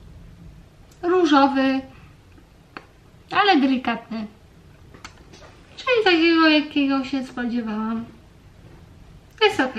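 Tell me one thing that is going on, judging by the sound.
A young woman talks calmly and close to a microphone, in short bursts.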